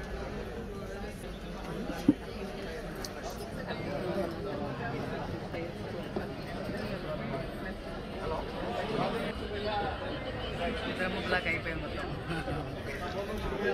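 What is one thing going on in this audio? A crowd of men and women chatter in a large echoing hall.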